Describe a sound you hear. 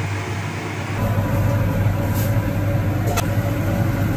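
A metal ladle clinks against a pan.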